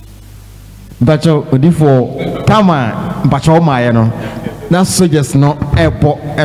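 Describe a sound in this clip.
A second man answers into a microphone.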